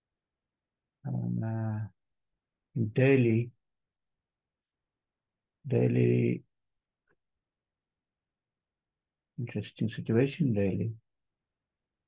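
A man speaks calmly into a microphone in short bursts.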